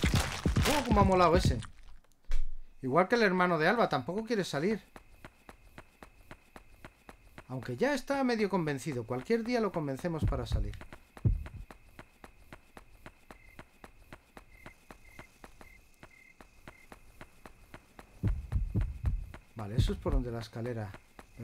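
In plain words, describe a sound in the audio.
A man talks with animation, close to a headset microphone.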